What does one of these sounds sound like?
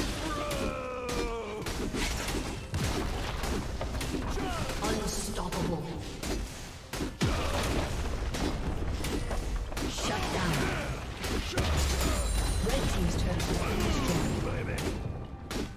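Magic blasts and weapon blows clash in a busy video game battle.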